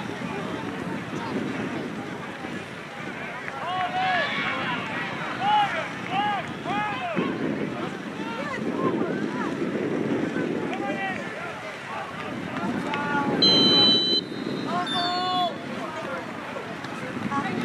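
Young players and spectators shout and call out across an open field outdoors.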